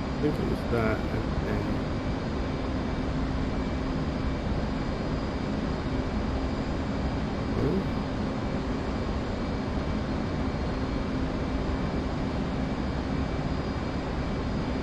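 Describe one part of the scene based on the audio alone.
A steady jet engine drones and hums.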